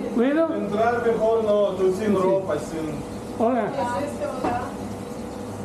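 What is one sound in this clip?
An elderly man speaks close to the microphone with animation.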